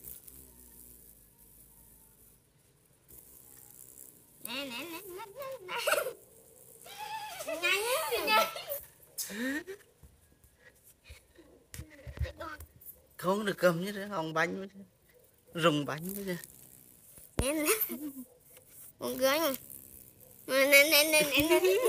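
A small toy car rolls across a hard tiled floor.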